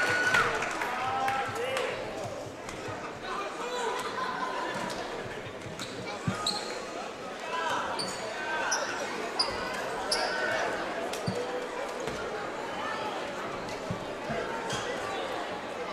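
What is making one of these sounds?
A large crowd chatters and murmurs in an echoing gym.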